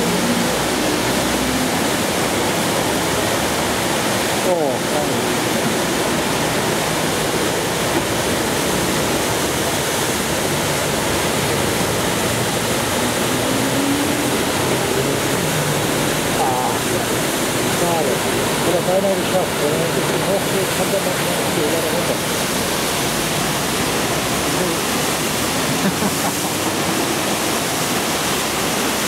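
Fast river water rushes and roars loudly, close by.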